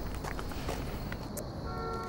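Footsteps tap on pavement outdoors.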